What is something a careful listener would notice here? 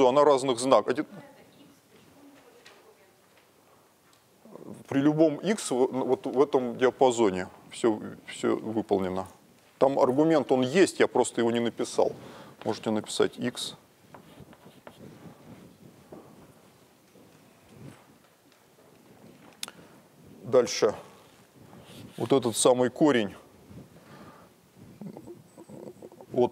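A middle-aged man lectures.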